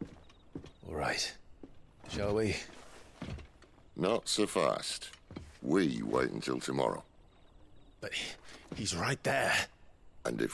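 A young man speaks firmly, up close.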